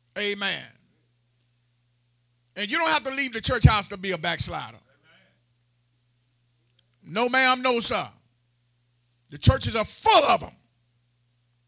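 A man speaks with emphasis into a microphone, in short bursts with pauses.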